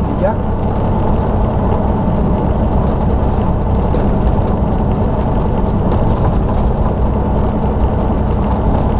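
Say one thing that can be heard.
Wind rushes loudly past an open window.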